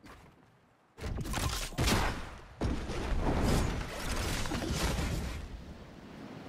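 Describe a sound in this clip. A game launch pad fires with a loud whoosh.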